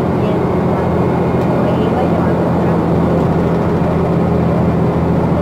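Tyres roar steadily on the highway.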